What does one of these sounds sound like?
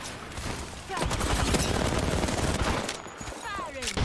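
Rapid gunfire bursts in short volleys.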